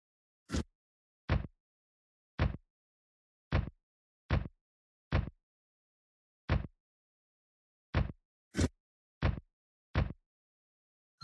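Heavy footsteps thud in a quick, even rhythm.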